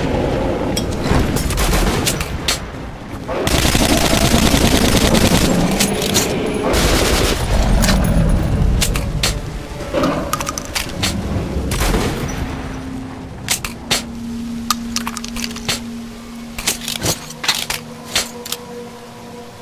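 Guns fire in quick sharp bursts.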